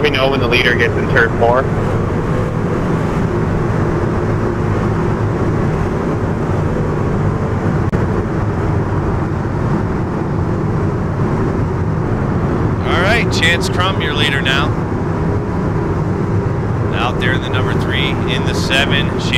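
Race car engines drone steadily around a track.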